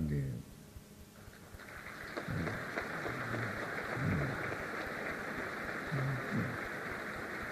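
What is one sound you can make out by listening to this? An elderly man speaks slowly and calmly.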